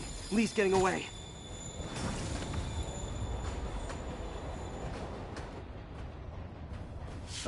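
A subway train rumbles low and steadily.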